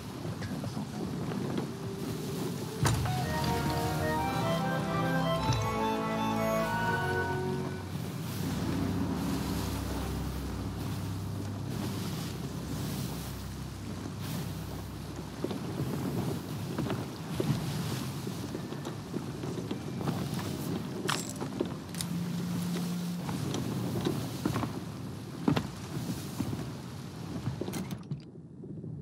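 Rough sea waves surge and crash steadily.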